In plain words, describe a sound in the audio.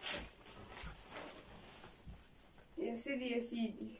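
Cardboard rustles as a box is unpacked.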